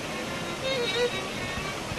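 Water flows over a weir and splashes steadily.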